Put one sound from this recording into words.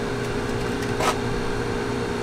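A small object clicks onto a table.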